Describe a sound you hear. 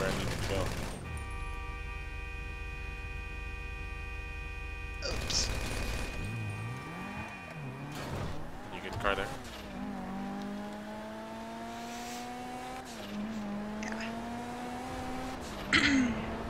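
A car engine idles and then revs as the car speeds up.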